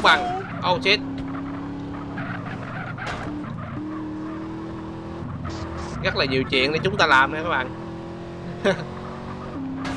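Car tyres screech while skidding round corners.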